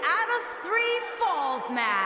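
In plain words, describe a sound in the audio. A woman announces loudly through a microphone, echoing through an arena.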